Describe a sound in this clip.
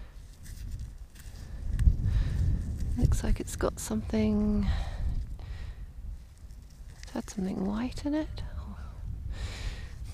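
Gloved fingers rub and crumble soil off a small object.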